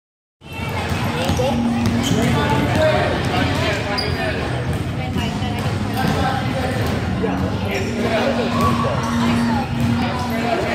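Children shout and chatter in a large echoing gym.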